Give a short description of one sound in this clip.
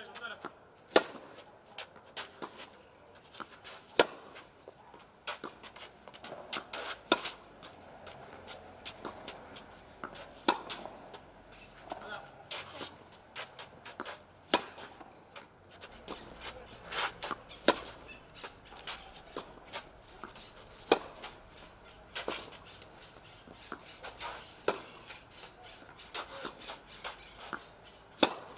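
A tennis racket strikes a ball with sharp pops, again and again.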